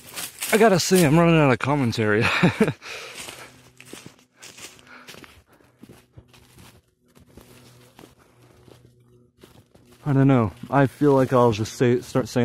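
Footsteps crunch and rustle through dry fallen leaves.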